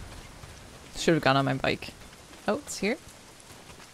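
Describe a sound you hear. A young woman speaks quietly into a close microphone.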